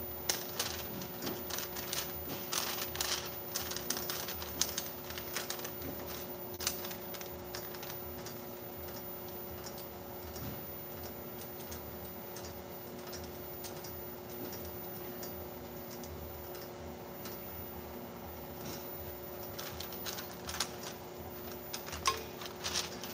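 Small parts on a machine click and rattle as a person handles them.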